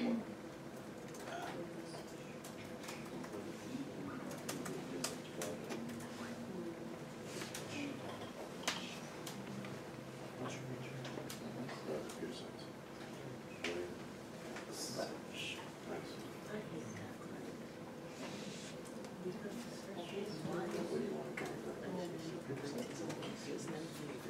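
Many young people chatter quietly in a room.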